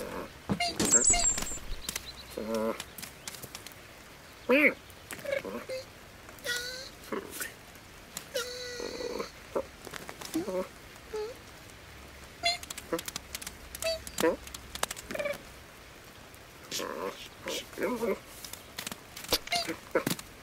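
A kitten mews in short, high cries.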